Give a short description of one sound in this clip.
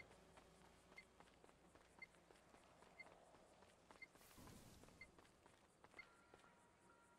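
A timer beeps once every second, counting down.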